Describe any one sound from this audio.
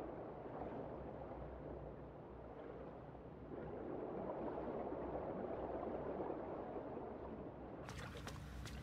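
Bubbles rush and gurgle underwater.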